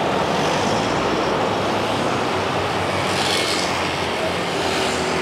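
Cars and motor scooters pass on a street.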